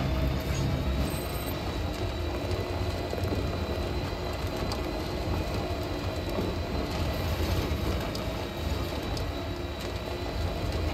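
Tyres crunch over rough gravel.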